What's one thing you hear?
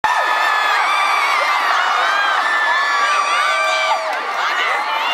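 A large crowd cheers and screams with excitement.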